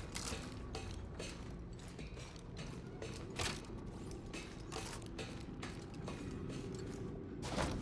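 Hands grip and clank against metal bars in quick bursts.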